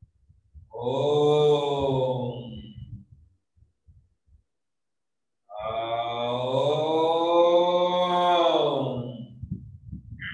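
A man chants long, steady tones over an online call.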